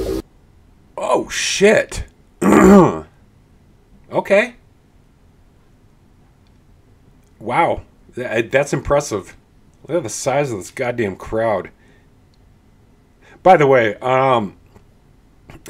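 A man speaks with animation, close to a microphone, in short bursts.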